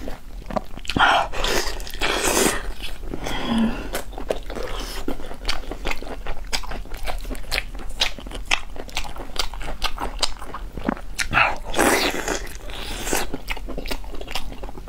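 A young woman chews and slurps food loudly close to a microphone.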